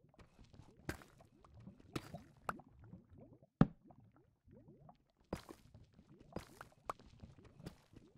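A pickaxe chips at stone blocks with sharp knocks.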